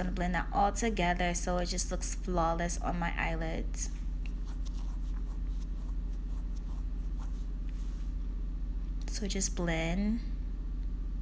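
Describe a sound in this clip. A young woman speaks softly close to a microphone.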